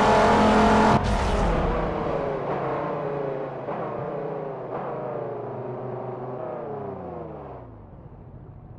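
A car engine winds down and fades away.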